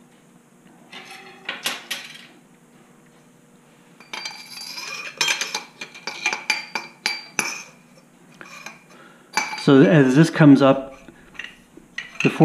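Metal parts clink and scrape against one another close by.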